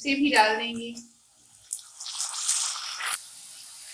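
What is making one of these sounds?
Chopped tomatoes tumble into a pan.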